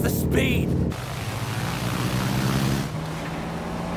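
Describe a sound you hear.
A propeller plane's engines roar.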